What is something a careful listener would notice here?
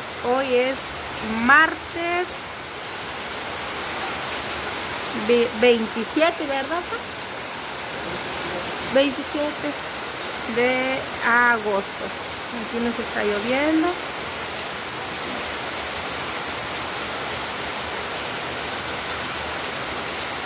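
Steady rain falls outdoors.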